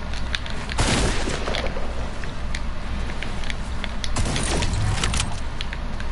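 Wooden building pieces snap into place with quick clattering knocks.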